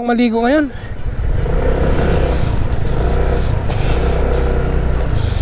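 A scooter engine rumbles low and steady.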